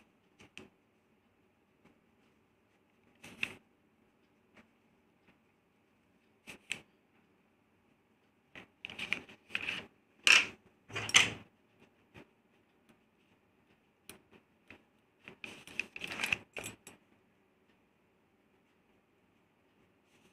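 A pen scratches as it writes on paper.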